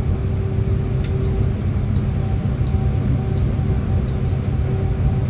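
The bus cabin rattles and clicks softly.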